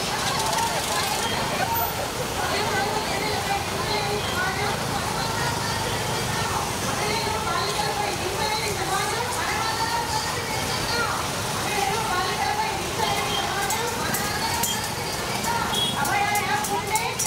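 A crowd of women chants and calls out outdoors.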